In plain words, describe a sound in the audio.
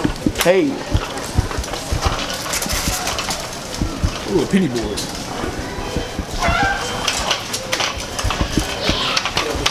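Small bicycle tyres roll along a smooth floor.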